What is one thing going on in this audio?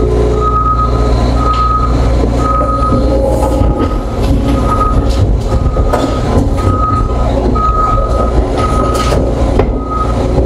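A machine's warning alarm beeps at a steady, even pace.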